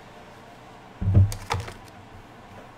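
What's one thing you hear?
A wooden board thumps down on a counter.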